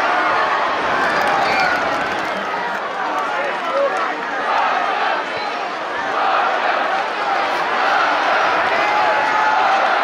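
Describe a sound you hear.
A crowd in a large outdoor stadium chants and cheers steadily.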